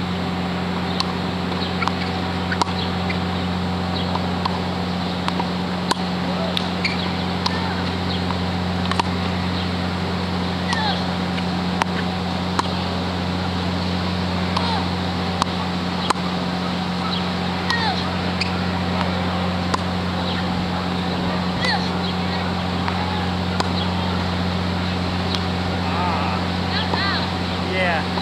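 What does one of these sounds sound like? Tennis balls are struck with a racket, heard from a short way off.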